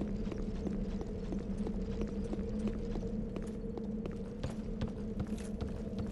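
Footsteps knock steadily on wooden rungs and boards.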